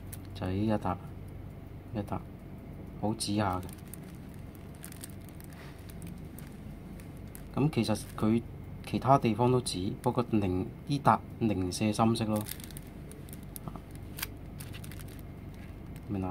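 A plastic sheet crinkles faintly as a hand presses on it.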